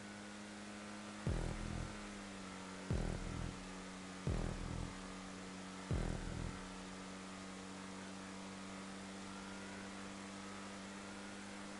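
A race car engine hums steadily.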